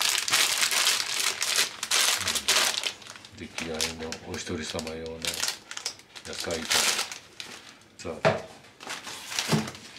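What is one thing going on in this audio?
Packages knock down onto a metal counter.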